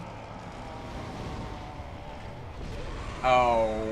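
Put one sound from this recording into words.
A fireball explodes with a roar.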